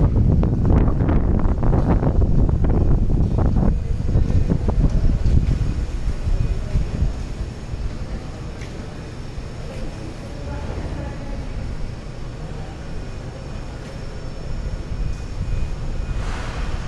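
An electric motor hums steadily as a lifting platform lowers.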